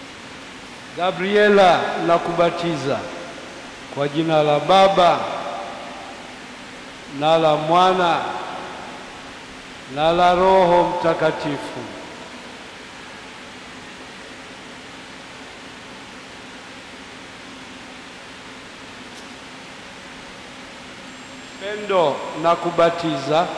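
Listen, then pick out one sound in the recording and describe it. A man chants in short sung phrases through a microphone, echoing in a large hall.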